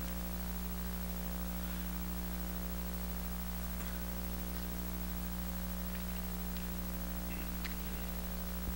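Footsteps scuff softly on a hard floor.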